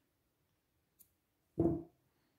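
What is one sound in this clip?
Scissors snip through a thread.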